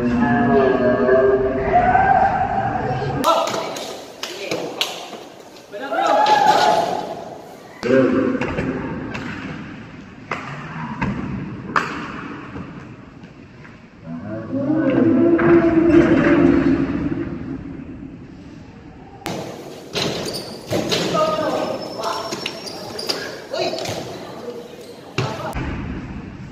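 Young men call out to each other across an echoing hall.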